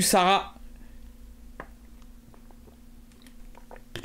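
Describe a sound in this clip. A man gulps water from a bottle.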